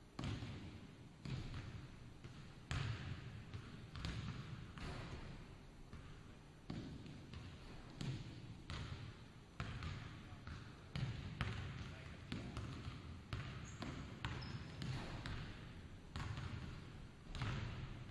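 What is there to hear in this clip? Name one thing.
A basketball bounces and thuds, echoing through a large hall.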